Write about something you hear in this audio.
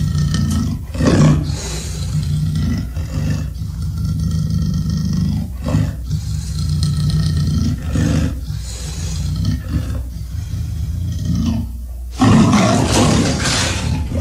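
A huge beast roars and growls deeply, over and over.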